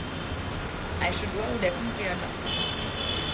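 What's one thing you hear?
A young woman speaks briefly and calmly, close to the microphone.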